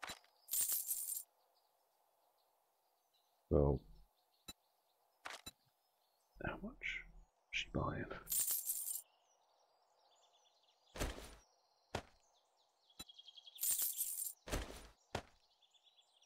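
Short game clicks and chimes sound as items are traded.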